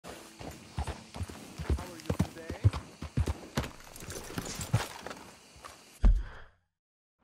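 A horse's hooves clop on a dirt path.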